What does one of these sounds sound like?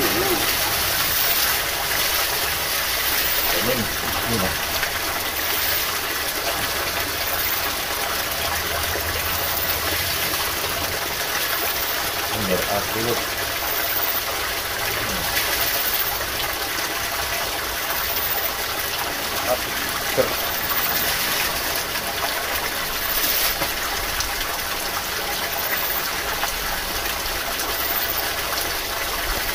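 Water pours from a spring spout and splashes into a shallow rocky pool.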